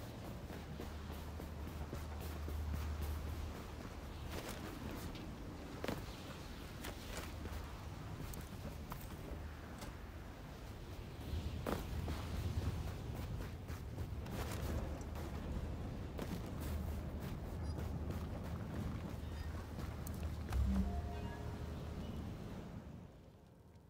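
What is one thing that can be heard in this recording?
Strong wind howls steadily in a blizzard.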